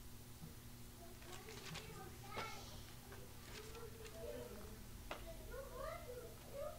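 An older man reads out calmly.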